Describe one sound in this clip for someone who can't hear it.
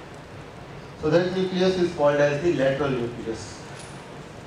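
A man speaks clearly and with emphasis, as if lecturing in a room.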